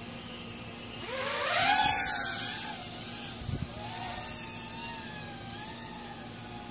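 A small drone's motors whine up to a high buzz as it takes off, then fade into the distance.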